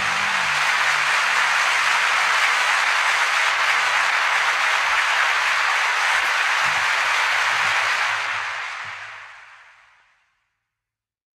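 A large crowd applauds and cheers, then fades away.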